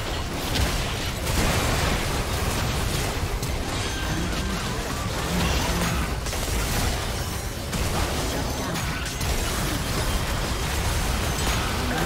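Magic spells crackle, whoosh and burst in a busy, rapid clash of fighting.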